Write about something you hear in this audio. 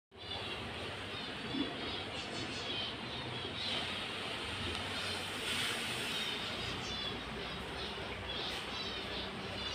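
Water bubbles and gurgles steadily in a fish tank.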